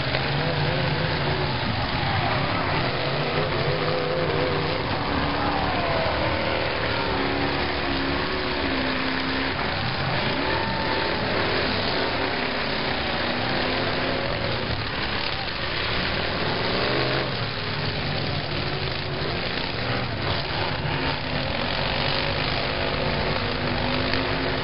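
Car engines roar and rev loudly.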